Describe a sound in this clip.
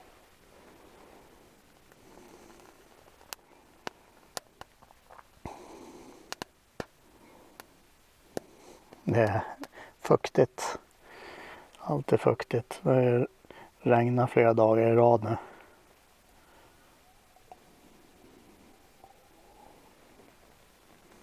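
A burning match crackles softly.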